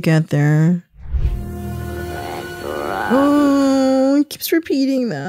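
A boy says a word in a low, croaking voice.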